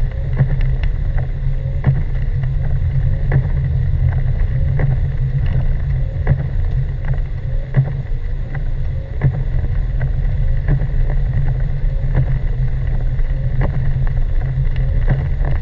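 A car drives on a snowy road, heard from inside the car as a low rumble.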